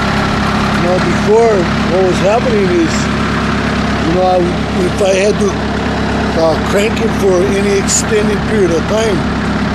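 An elderly man speaks close to the microphone.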